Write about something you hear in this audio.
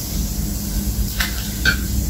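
A young man and a young woman clink a glass and a can together.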